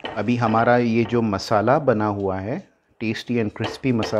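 Spatulas scrape and clatter against a frying pan as food is stirred.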